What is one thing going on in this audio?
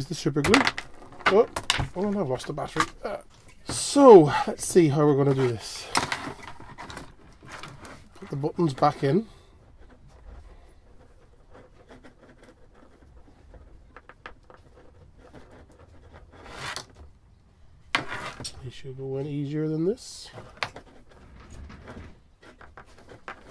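Plastic parts click and rattle as hands handle them.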